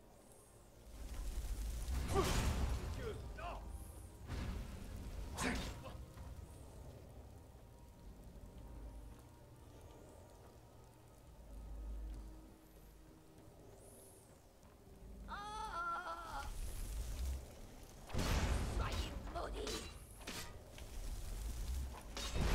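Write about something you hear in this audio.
Flames burst and roar in loud whooshes.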